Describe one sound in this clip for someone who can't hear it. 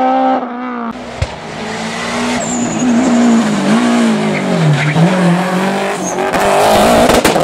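A third rally car engine roars up and passes loudly.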